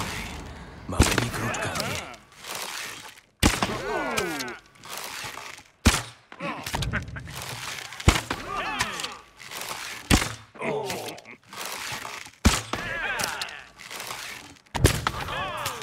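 A bowstring snaps as arrows are loosed, again and again.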